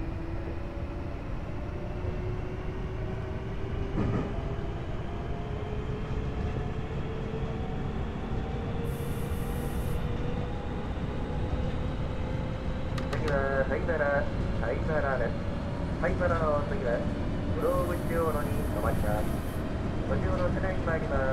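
A train's electric motor hums steadily and slowly rises in pitch.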